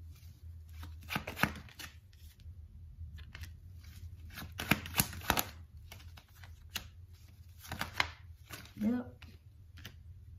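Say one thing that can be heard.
Playing cards rustle and snap as a deck is shuffled by hand.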